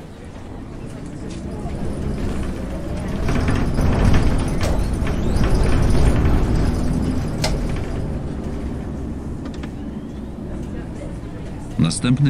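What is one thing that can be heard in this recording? A bus engine revs up loudly as the bus pulls away.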